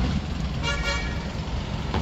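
A bus drives by on a street.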